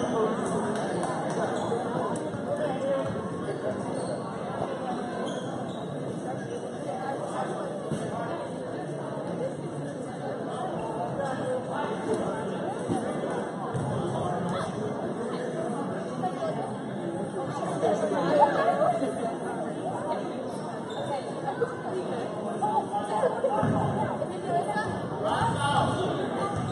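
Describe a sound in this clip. Spectators chatter and murmur throughout a large echoing gym.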